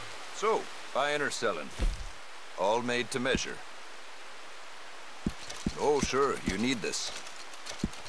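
An elderly man speaks in a gruff, raspy voice.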